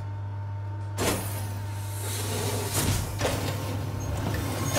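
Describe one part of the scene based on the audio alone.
Heavy sliding doors open with a loud hiss.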